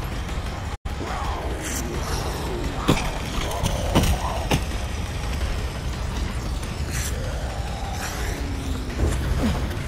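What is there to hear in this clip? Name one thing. A big cat snarls and growls.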